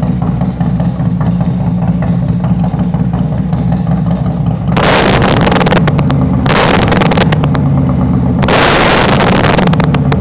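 A motorcycle engine idles with a loud, rough rumble.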